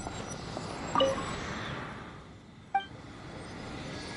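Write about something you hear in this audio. A bright magical chime rings out and shimmers.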